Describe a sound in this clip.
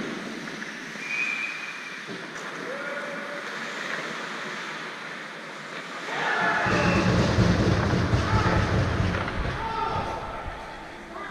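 Hockey players shout calls to each other across the ice.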